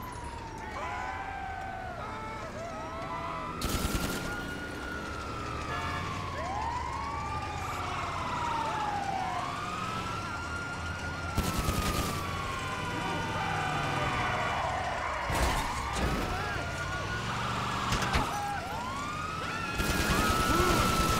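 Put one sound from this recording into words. An ambulance siren wails, rising and falling over and over.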